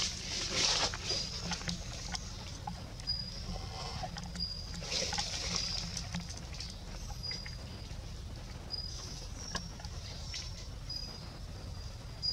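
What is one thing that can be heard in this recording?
Leaves rustle softly as a small monkey shifts on a branch.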